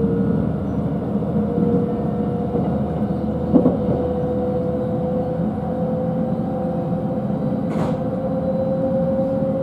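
A steady electric motor whine hums from the train.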